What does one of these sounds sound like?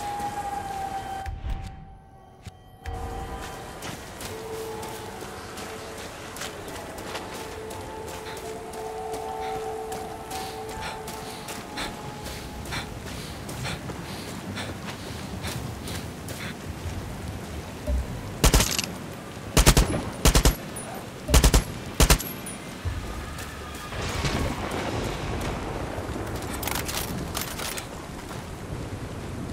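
Footsteps crunch over grass and sand.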